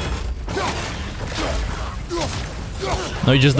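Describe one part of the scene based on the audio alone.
A heavy axe strikes a large creature.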